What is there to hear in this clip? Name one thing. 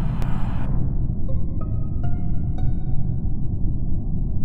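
Short electronic tones chime in a rising run.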